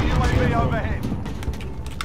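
A young man talks through a close microphone with animation.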